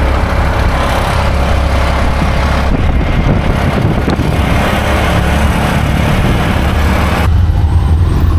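Wind rushes loudly past while riding.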